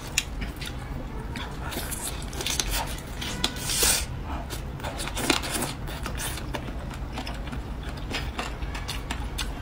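A young woman chews and smacks her lips loudly, close to a microphone.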